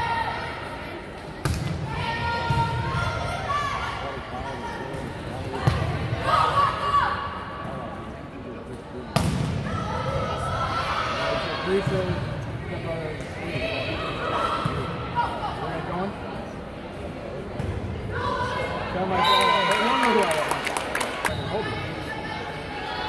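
Young women shout and call out to each other across an echoing gym.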